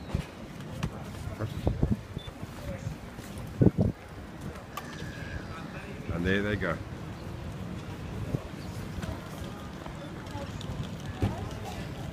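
Small cart wheels roll and rattle over paving stones.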